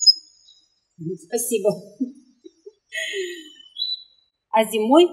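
A woman talks and laughs cheerfully close by.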